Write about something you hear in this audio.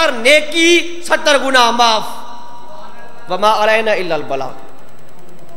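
A young man chants loudly into a microphone.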